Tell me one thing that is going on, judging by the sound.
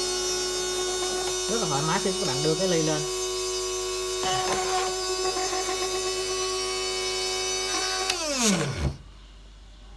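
A small electric mixer motor whirs with a steady hum, then winds down and stops.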